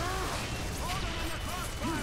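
Claws slash through the air with a sharp whoosh.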